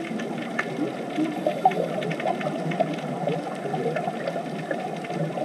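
Air bubbles from scuba divers gurgle and burble steadily underwater.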